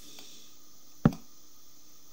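A wooden block is set down with a short knock.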